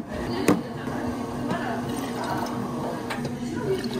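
Water pours into a glass jar.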